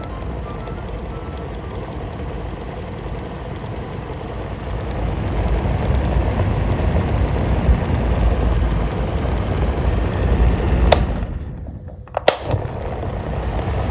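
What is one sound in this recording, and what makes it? Electric fans whir and hum steadily.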